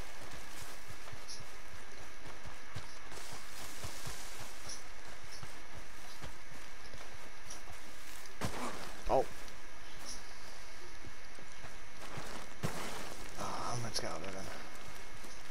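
Pine branches rustle and brush past.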